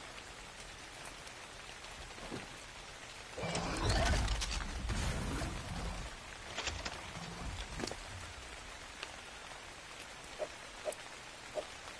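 Menu clicks tick softly now and then.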